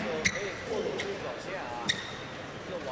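A racket strikes a shuttlecock with sharp pops in a large hall.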